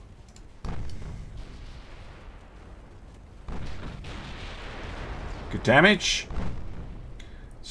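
Heavy guns boom in bursts.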